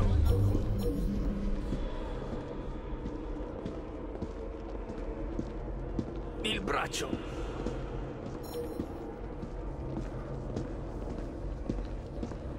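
Footsteps tap steadily on stone pavement.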